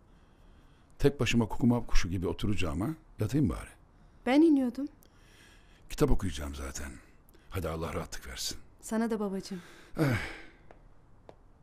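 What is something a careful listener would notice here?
A middle-aged man speaks angrily nearby.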